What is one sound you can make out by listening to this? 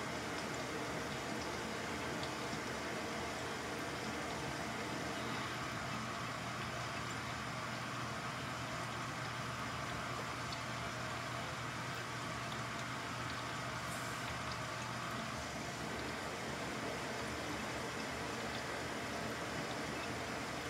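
Water and laundry slosh inside a washing machine.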